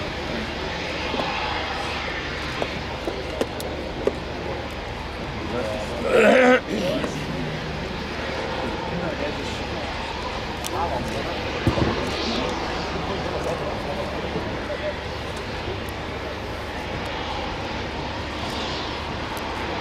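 A jet airliner's engines roar steadily.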